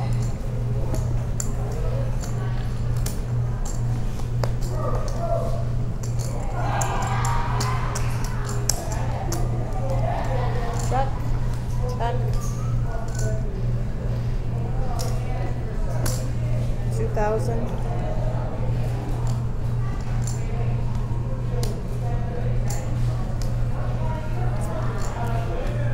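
Poker chips click against each other.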